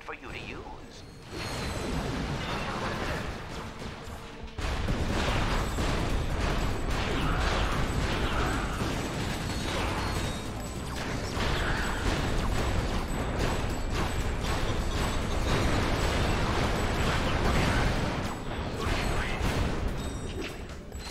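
Weapon blasts and explosions boom and crackle.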